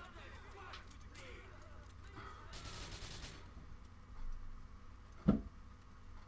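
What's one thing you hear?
A fire roars and crackles.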